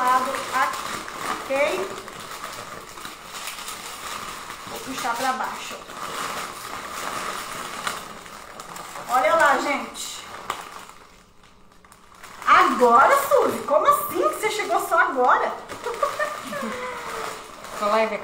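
Wrapping paper crinkles and rustles in hands.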